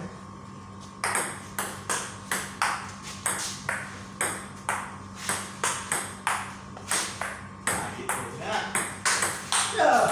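A ping-pong ball clicks back and forth quickly between paddles and a table.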